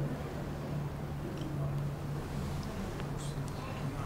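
A spoon clinks softly against a ceramic bowl.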